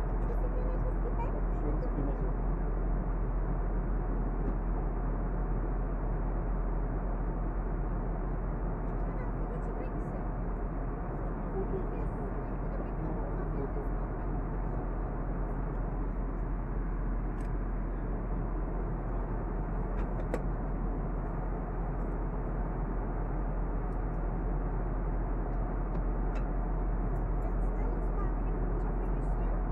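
Jet engines roar steadily inside an aircraft cabin.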